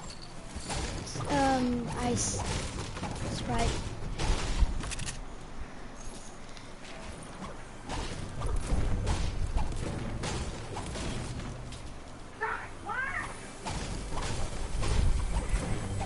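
A pickaxe strikes a wall with repeated knocks.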